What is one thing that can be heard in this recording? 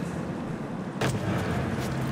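A body lands with a heavy thud on wooden planks.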